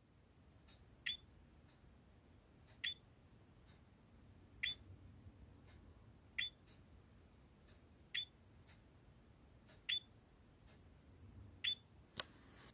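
A small buzzer ticks faintly at a slow, even pace.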